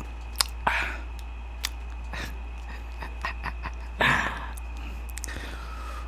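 A young man chews loudly and wetly close to a microphone.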